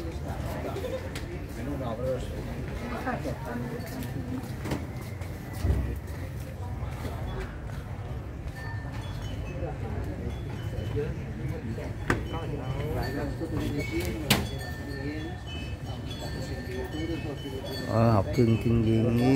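Men and women chat casually nearby, among a murmuring crowd.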